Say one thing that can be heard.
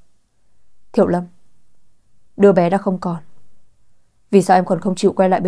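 A young woman speaks close to a microphone with animation, in short bursts.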